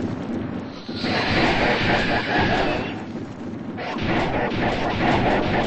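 Heavy blows thud and crash as two monsters fight.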